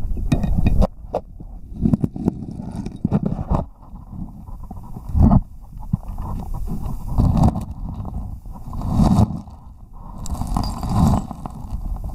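Water rushes and gurgles in low, muffled surges, heard from underwater.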